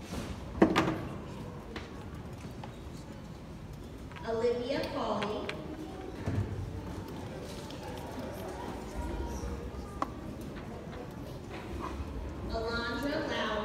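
Footsteps of a child patter on a wooden floor.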